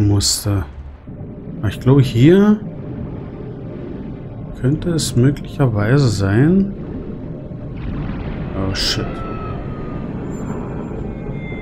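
Bubbles gurgle and rumble underwater.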